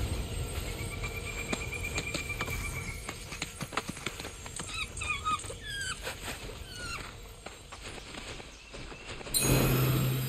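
A large bird's feet patter quickly on the ground.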